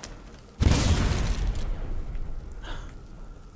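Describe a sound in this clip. A blast of magic roars loudly and fades.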